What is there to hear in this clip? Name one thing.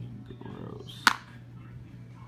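A plastic container clicks sharply once.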